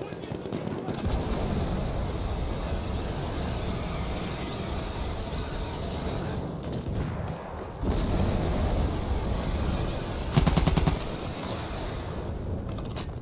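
Flames roar and crackle from a flamethrower.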